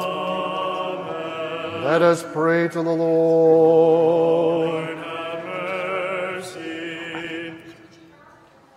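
Several men chant in unison in a large echoing hall.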